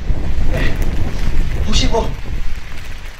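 A young man speaks loudly into a microphone over a loudspeaker, outdoors.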